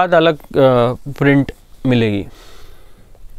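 A man speaks with animation close by.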